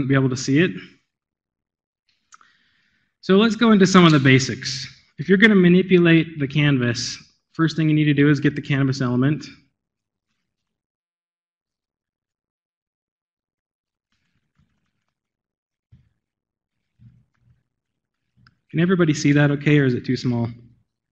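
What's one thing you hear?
A man speaks calmly into a microphone in a large room, pausing now and then.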